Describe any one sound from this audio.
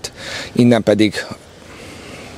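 A man speaks calmly into a microphone outdoors.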